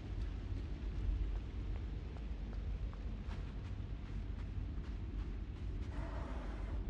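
Small footsteps patter quickly on a hard floor.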